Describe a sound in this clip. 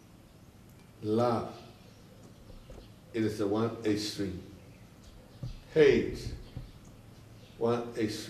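An elderly man speaks calmly and slowly, close by, in short phrases with pauses.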